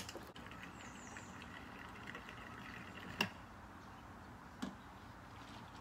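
Liquid fuel glugs as it is poured from a can.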